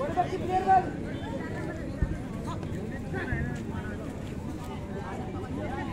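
A crowd of people chatter and shout outdoors.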